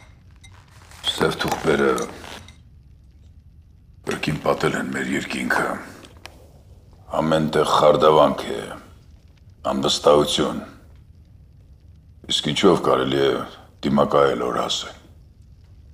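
An older man speaks in a low, serious voice close by.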